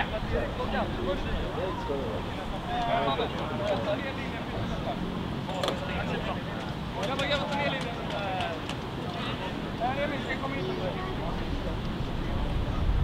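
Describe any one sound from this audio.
Young men talk and call out to each other outdoors.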